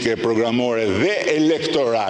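An older man laughs into a microphone.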